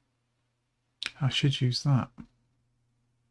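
A man speaks briefly into a microphone, close by.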